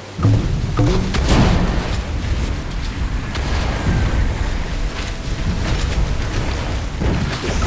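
Cannon shots and explosions burst again and again.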